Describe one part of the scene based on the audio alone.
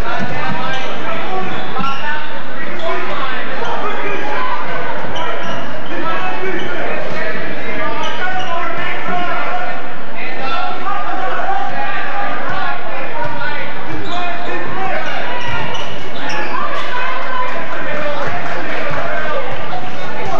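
A crowd of spectators cheers and shouts throughout a large echoing gym.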